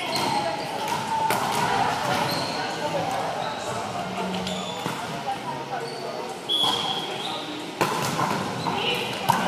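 Children chatter and call out across a large echoing gym.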